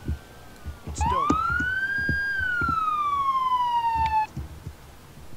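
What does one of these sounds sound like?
A police siren wails briefly, rising and then falling.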